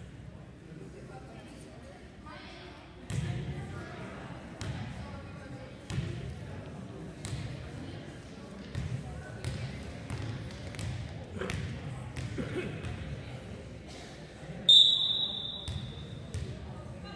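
Young girls chat and call out nearby.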